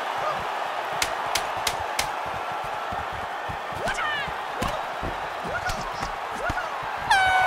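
Punches land with sharp slaps.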